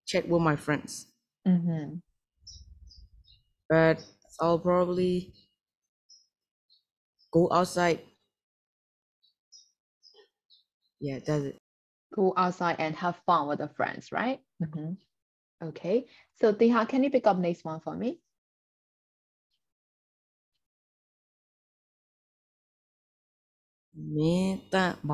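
A young woman speaks calmly and clearly through an online call, in short phrases with pauses.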